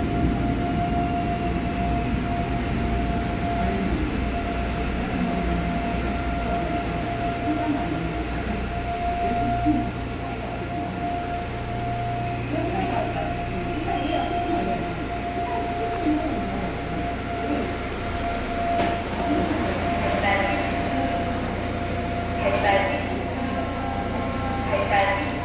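A subway train rumbles steadily along the track.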